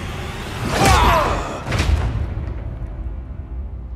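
A heavy blow lands with a loud thud and a booming rumble.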